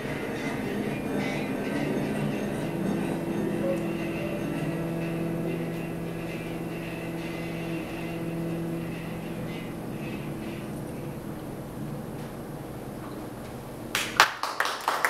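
A theremin plays a wavering, gliding tune.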